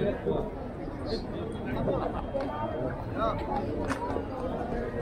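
A crowd of men chatters nearby outdoors.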